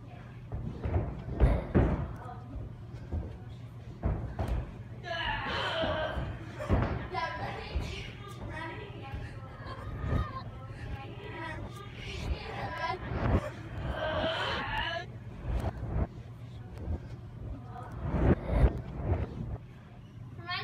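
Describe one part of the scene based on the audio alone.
Feet thud on a padded floor.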